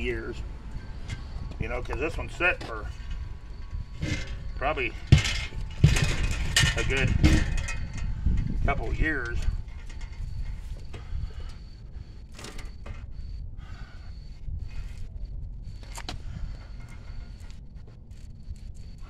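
A bicycle rattles and clanks as it is set down and handled.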